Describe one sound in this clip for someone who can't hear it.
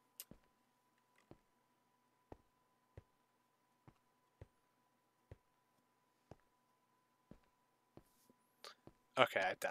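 Footsteps tap on stone steps at an even pace.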